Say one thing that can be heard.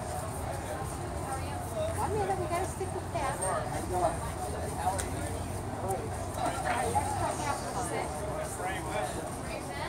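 A stick of charcoal scratches softly on paper.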